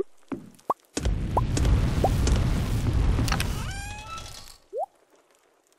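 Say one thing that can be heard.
A game furnace roars with a whooshing rush.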